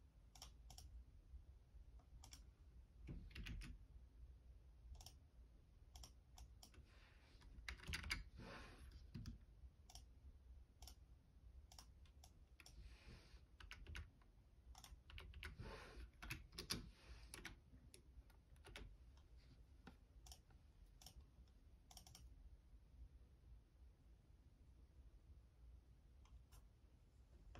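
Keys on a keyboard click and clack as fingers press them.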